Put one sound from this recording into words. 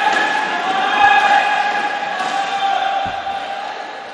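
A ball is kicked hard on an indoor court.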